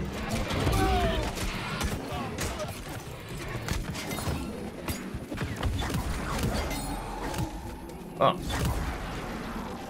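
Swords clash and strike in quick fighting.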